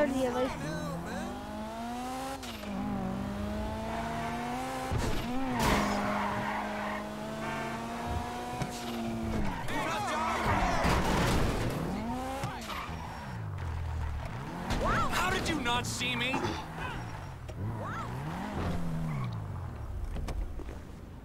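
A car engine roars and revs up and down as it drives.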